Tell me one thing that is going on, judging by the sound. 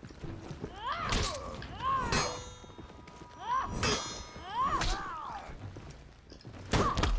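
Metal blades clash and ring sharply, again and again.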